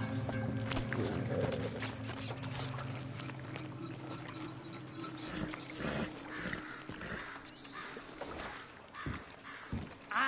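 A horse's hooves clop on wooden planks.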